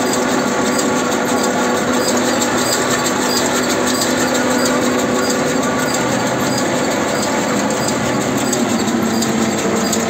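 A large farm machine runs nearby with a loud, steady clattering hum.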